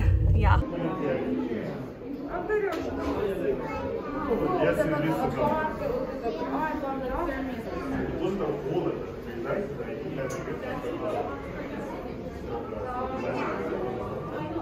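Men and women talk in a murmur nearby indoors.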